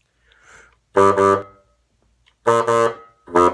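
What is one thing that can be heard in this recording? A bass clarinet plays short, loud low notes.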